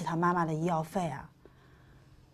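A young woman speaks with concern, close by.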